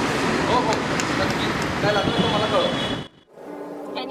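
A middle-aged man talks on a phone outdoors.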